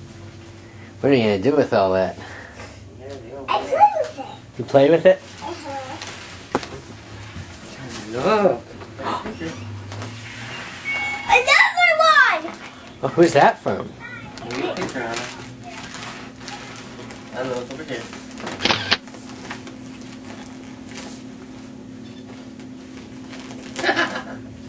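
A young child shrieks and squeals excitedly close by.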